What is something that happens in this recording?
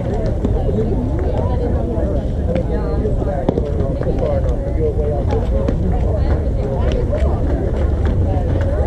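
Women chatter and call out to each other outdoors at a distance.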